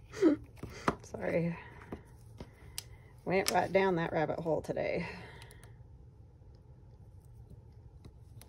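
A small bottle lid clicks and taps against a table.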